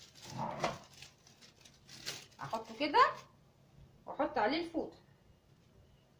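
A plastic sheet crinkles.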